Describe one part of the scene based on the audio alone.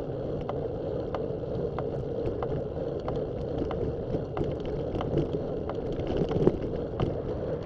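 Tyres roll steadily over rough asphalt.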